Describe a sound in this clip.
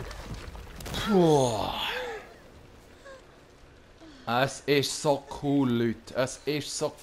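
A young woman cries out and groans in pain close by.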